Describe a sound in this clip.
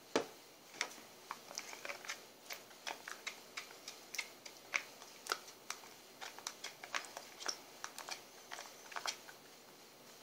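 A spoon clinks and scrapes against a bowl.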